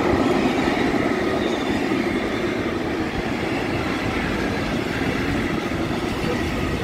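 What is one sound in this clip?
A freight train rumbles and rattles steadily past close by.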